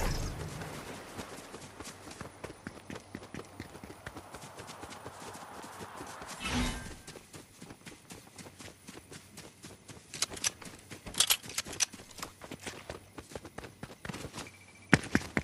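Footsteps run quickly over grass and pavement.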